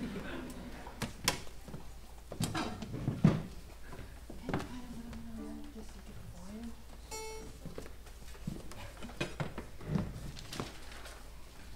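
Music stands and instruments knock and thump on a wooden stage.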